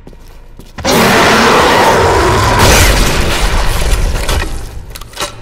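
A large explosion booms and rumbles, then fades.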